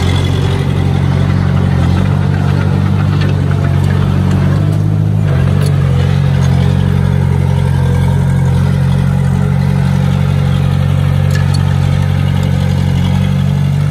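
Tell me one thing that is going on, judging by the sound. A bulldozer's diesel engine rumbles loudly and steadily close by.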